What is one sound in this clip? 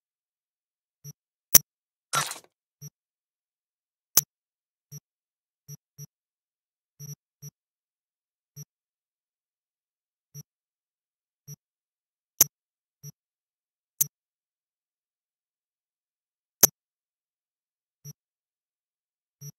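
Short soft interface blips sound each time a menu selection changes, with a few sharper clicks.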